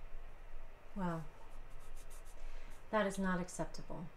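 A woman speaks gently, close by.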